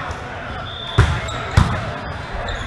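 A volleyball is struck with loud slaps.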